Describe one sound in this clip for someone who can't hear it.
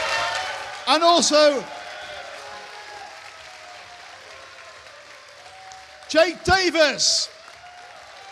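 A man shouts out loudly.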